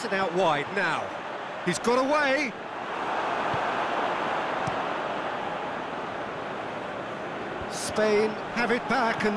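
A large stadium crowd roars steadily in the background.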